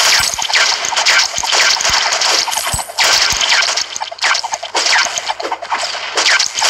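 Game laser shots fire rapidly with bright zapping bursts.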